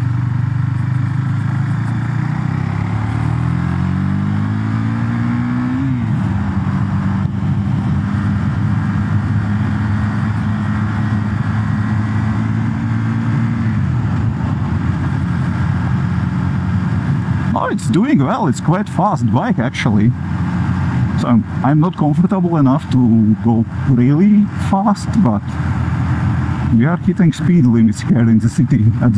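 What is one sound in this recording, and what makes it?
A motorcycle engine drones steadily and revs up through the gears.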